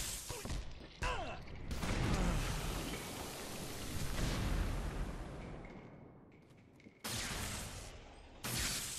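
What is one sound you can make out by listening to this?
Loud explosions boom and rumble in a game.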